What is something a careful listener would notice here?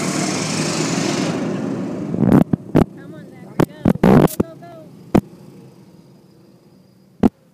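Go-kart engines roar loudly nearby and then fade as the karts pull away.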